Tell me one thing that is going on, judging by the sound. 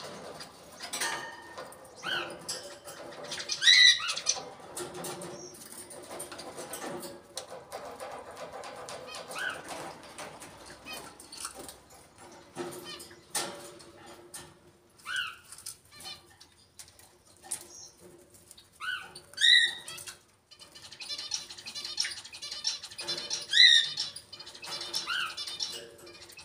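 A parrot whistles and squawks in short bursts.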